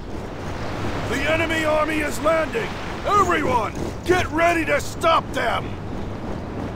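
A man shouts orders urgently.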